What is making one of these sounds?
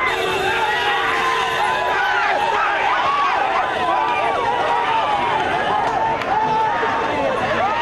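A large crowd of men shouts and cheers loudly nearby, outdoors.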